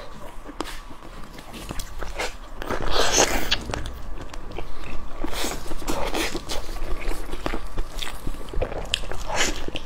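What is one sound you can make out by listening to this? A young woman chews and smacks her lips loudly and close up.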